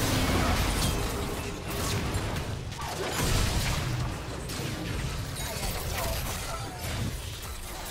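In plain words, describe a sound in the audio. Game spell effects blast and crackle in a busy fight.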